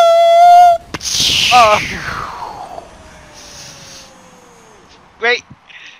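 A loud explosion bursts, followed by a long falling whoosh.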